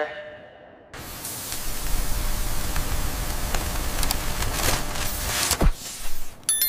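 A power tool grinds loudly against rock, with a harsh hiss.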